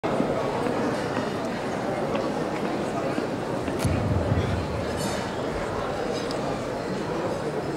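A live band plays loud music through loudspeakers in a large room.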